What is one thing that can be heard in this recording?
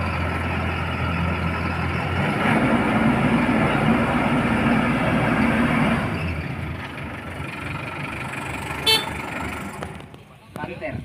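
A harvester engine rumbles loudly close by.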